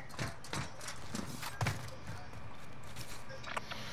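Footsteps tap on a hard rooftop.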